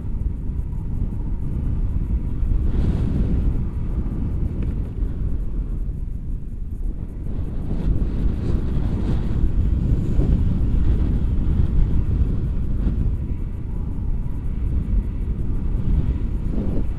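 Strong wind buffets and rumbles against a microphone outdoors.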